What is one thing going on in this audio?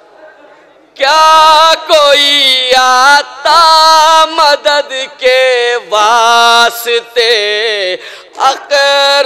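A man sings loudly through a loudspeaker.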